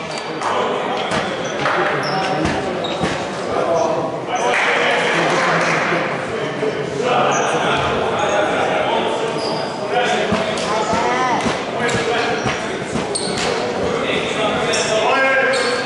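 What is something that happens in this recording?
Young players call out and chatter in a large echoing hall.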